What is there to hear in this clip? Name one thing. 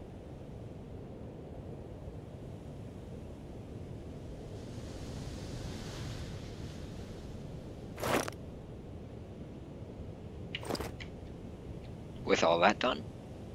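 Wind blows softly and steadily outdoors.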